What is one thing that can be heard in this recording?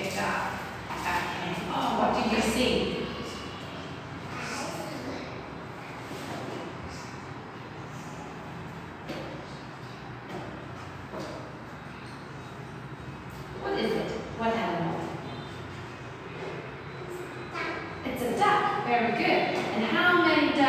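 A little girl answers in a small voice.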